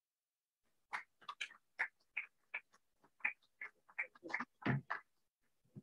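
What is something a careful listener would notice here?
Footsteps tap across a stage.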